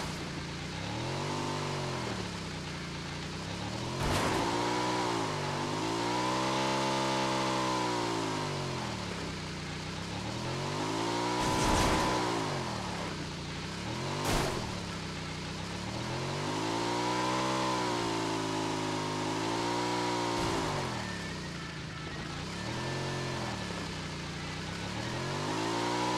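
A motorcycle engine revs up and down as the bike rides along.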